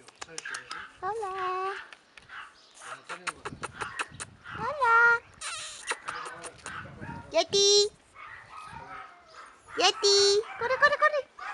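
A puppy yips and whines in short high cries.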